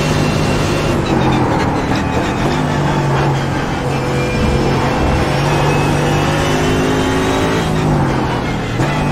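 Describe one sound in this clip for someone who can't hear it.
A racing car engine drops in pitch as the car brakes and downshifts.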